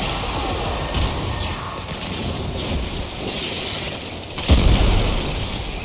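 Explosions thud loudly.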